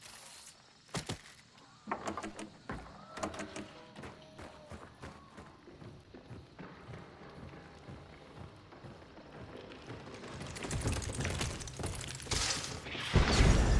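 Footsteps thud on creaking wooden boards.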